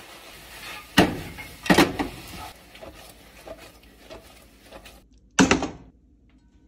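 A metal pan clanks against a stove grate.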